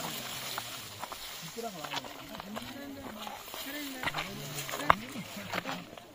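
Footsteps scuff on rock.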